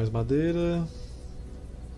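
A young man talks briefly and casually into a close microphone.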